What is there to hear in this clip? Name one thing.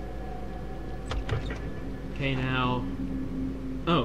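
A door clicks and swings open.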